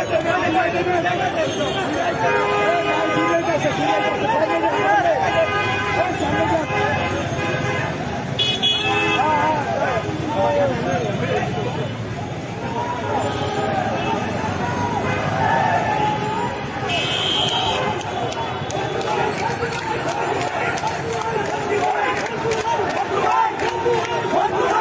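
A crowd of men shouts and chants outdoors in a street.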